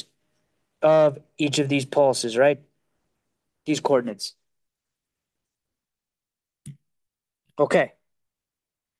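A man lectures calmly through a microphone, in short phrases with pauses.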